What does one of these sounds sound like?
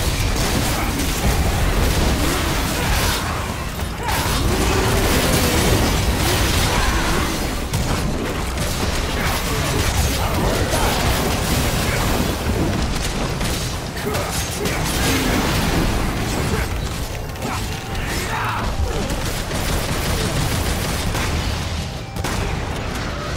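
A huge beast roars and growls loudly.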